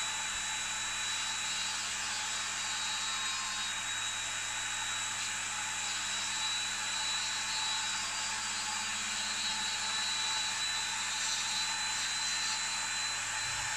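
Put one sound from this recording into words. A grinding stone grinds against a small piece of metal.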